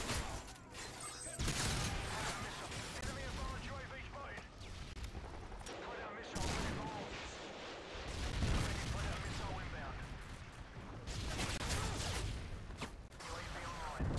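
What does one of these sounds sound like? Gunfire rattles in short, rapid bursts.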